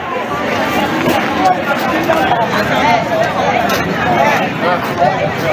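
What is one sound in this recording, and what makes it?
A crowd of men and women chatter and talk over one another close by, outdoors.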